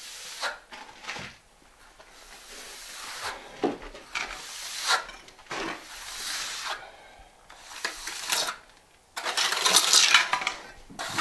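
A trowel scrapes and smooths wet mortar.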